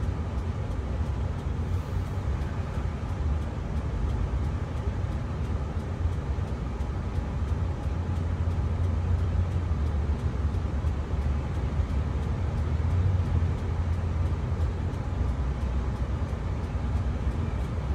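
Traffic passes by outside.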